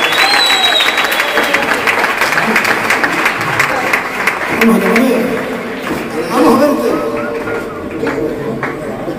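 Acoustic guitars strum a lively tune.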